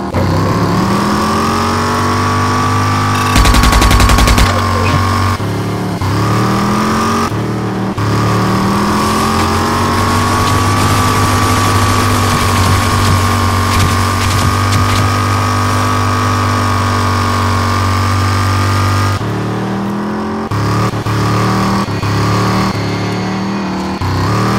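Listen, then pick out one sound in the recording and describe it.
A car engine roars steadily, rising and falling in pitch as it shifts gears.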